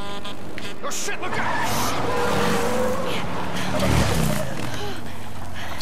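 A motorcycle skids and roars on gravel.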